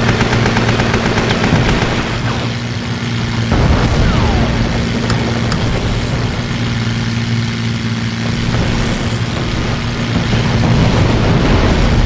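A propeller plane's engine drones steadily and loudly.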